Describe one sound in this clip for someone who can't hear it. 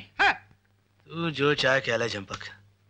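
A man talks nearby.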